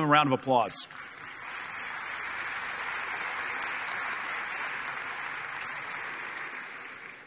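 A large crowd applauds steadily in a large hall.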